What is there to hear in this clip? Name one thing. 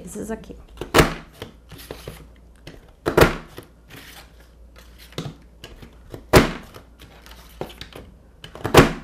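A paper punch clicks sharply as it cuts through card.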